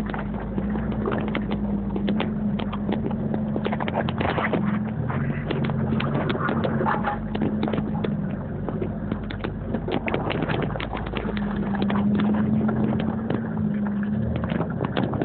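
An engine rumbles and revs steadily close by.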